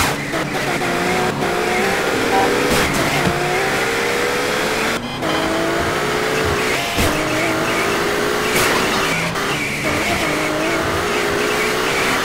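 A car engine hums and revs up and down as it drives.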